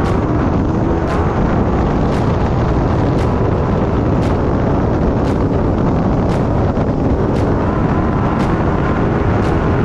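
A vehicle engine roars loudly as it drives fast.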